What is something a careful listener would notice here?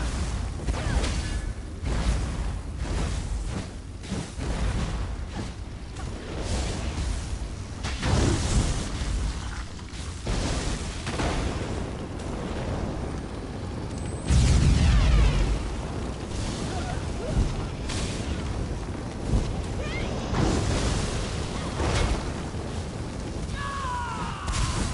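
Magic spells crackle and burst in a fast, busy fight.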